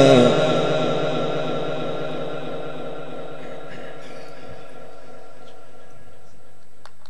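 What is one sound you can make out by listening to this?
A man chants in a long, melodic voice through a microphone and loudspeakers, fading into a long echo.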